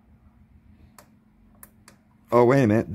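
A switch clicks on a small electronic device.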